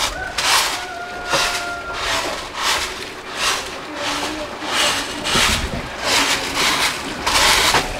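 A straw broom sweeps in quick, scratchy strokes.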